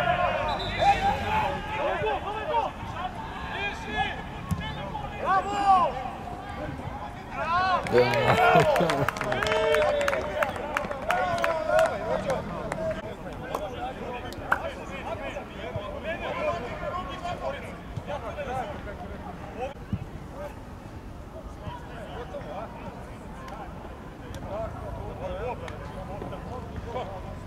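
Men shout and call out to each other outdoors across an open field.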